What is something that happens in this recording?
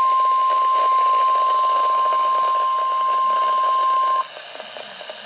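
A radio sounds a loud, steady, high alert tone through its small loudspeaker, then stops abruptly.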